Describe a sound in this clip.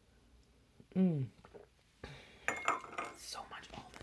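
A porcelain teacup clinks down onto a saucer.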